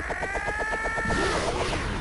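An energy blast bursts with a loud roaring whoosh.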